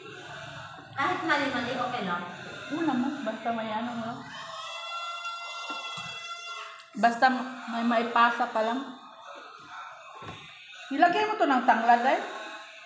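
A woman talks casually close by.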